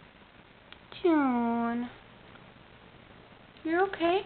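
A cat meows loudly, several times.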